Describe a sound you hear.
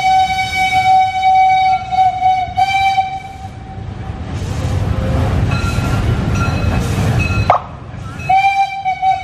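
A steam locomotive whistle blows long and shrill.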